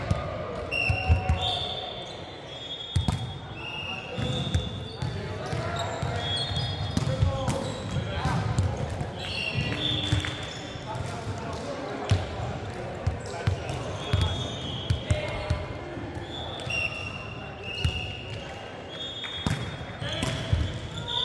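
A ball smacks off hands and bounces with loud thuds.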